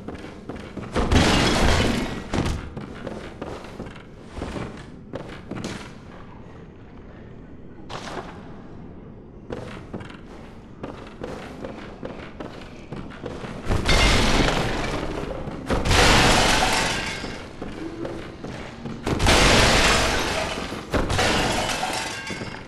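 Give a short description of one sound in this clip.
Wooden furniture crashes and splinters under heavy blows.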